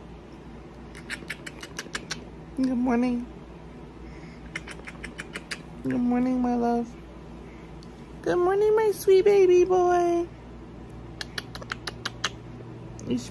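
A woman gives quick smacking kisses close by.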